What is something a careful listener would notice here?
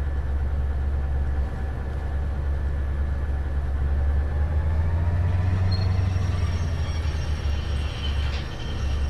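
A diesel locomotive engine rumbles steadily, deep and loud.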